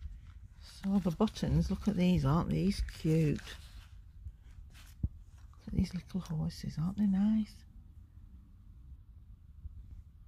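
Small wooden pieces click softly as fingers handle them.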